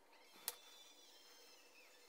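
A pencil scratches on wood.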